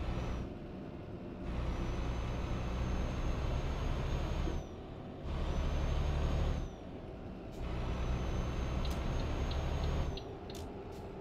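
A truck engine rumbles steadily, growing louder in bursts as it accelerates.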